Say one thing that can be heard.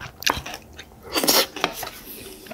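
A man slurps and chews food close by.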